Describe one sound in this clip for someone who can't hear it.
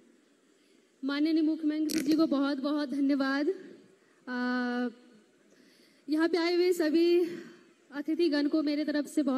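A young woman speaks with animation into a microphone over a loudspeaker.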